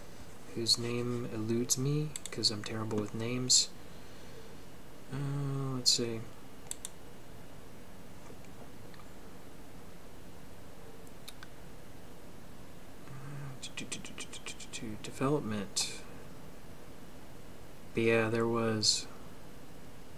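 A man speaks calmly close to a microphone, with pauses.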